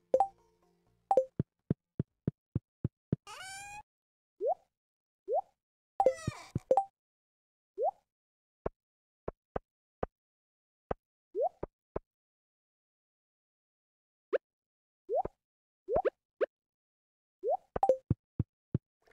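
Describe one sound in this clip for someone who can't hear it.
Short game menu clicks and blips sound again and again.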